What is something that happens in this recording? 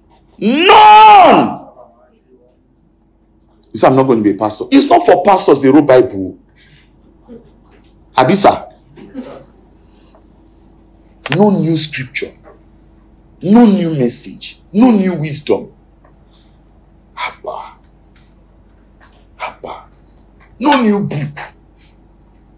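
A middle-aged man preaches with passion into a clip-on microphone, in short bursts with pauses.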